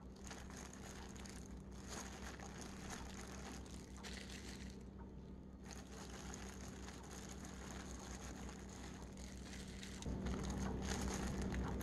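Plastic gloves crinkle and rustle close by as hands press down soft food.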